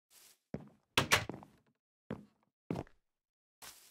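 A wooden door creaks open and bangs shut.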